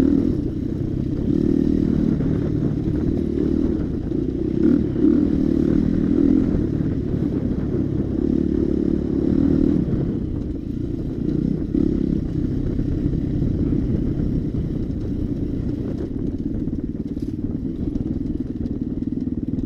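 A dirt bike engine drones and revs up and down close by.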